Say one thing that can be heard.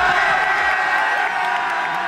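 A group of young men cheers and shouts loudly outdoors.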